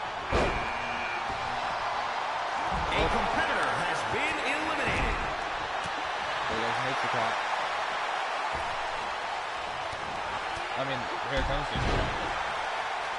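Bodies slam onto a ring mat with heavy thuds.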